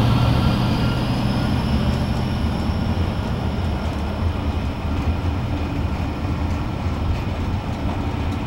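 Freight wagons clatter over the rails.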